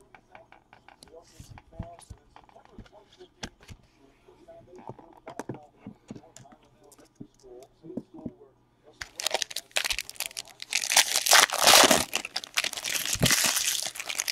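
Card boxes knock and rustle as they are handled.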